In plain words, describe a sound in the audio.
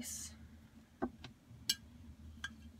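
A glass jar clinks softly.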